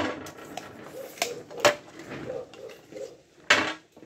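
A tape measure is set down on a hard surface with a knock.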